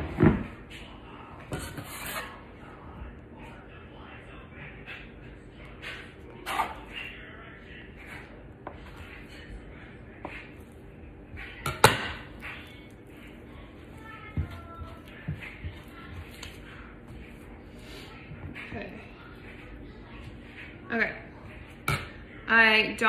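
A metal scraper scrapes and taps on a countertop.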